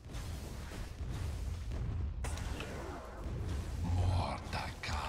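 Magic blasts whoosh and crackle in a game.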